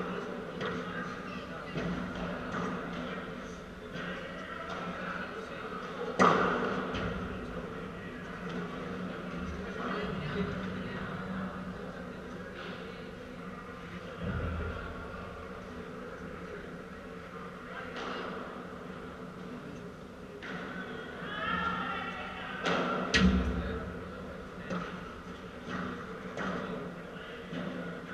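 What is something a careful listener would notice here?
Paddle rackets hit a ball with sharp pops that echo in a large hall.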